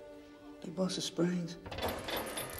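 A man speaks quietly and tensely close by.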